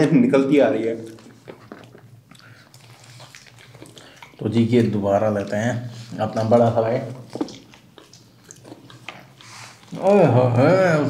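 A man chews food loudly.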